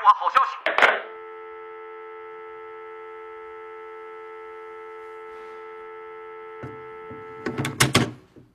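A telephone handset gives a steady dial tone.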